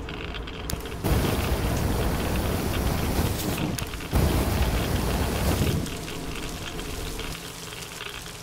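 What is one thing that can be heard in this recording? A burst of fire roars loudly with a rushing blast.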